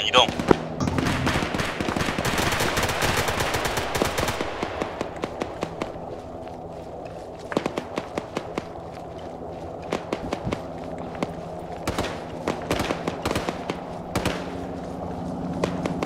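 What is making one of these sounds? Footsteps crunch over dry grass and dirt.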